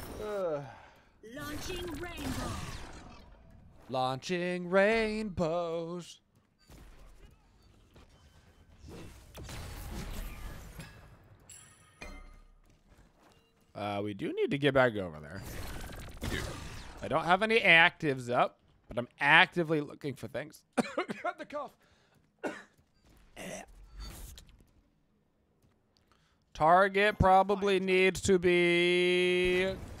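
Game sound effects whoosh and zap.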